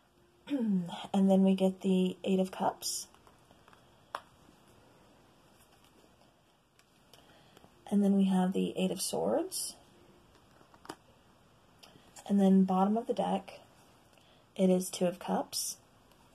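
Playing cards slide and tap softly onto a cloth-covered table.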